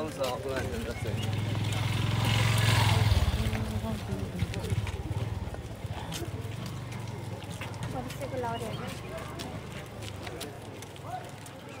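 A young woman talks close by.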